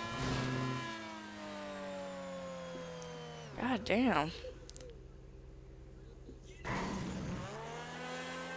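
A car engine drops in pitch as the car flies through the air.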